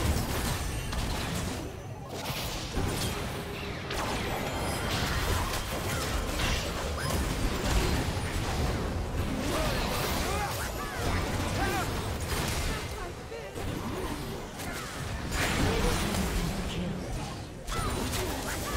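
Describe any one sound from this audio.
Video game spell effects whoosh, crackle and clash in a busy battle.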